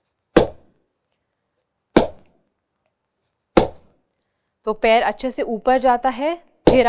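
Bare feet stamp on a wooden floor at a slow, even beat.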